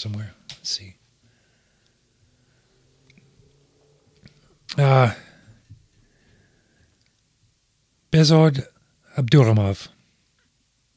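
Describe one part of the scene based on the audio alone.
A middle-aged man speaks close to a microphone in short, calm bursts.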